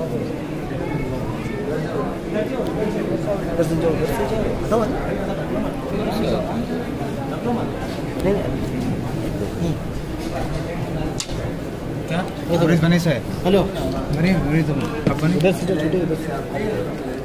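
A crowd of men murmurs and talks close by.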